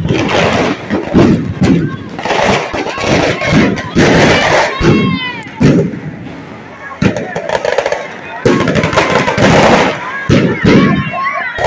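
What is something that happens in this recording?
A crowd of men and women shouts and cheers loudly outdoors.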